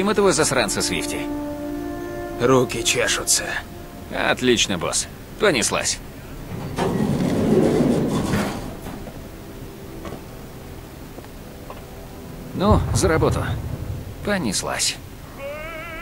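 A man speaks calmly and close.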